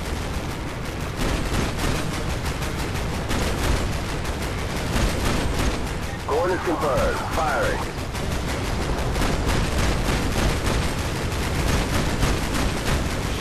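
Rapid gunfire crackles close by.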